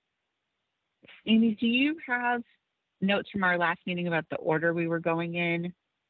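A woman speaks with emotion over an online call, her voice breaking.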